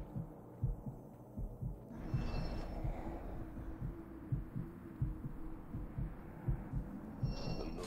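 Footsteps run quickly over the ground.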